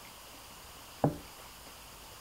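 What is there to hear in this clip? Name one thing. A dish clatters on a table.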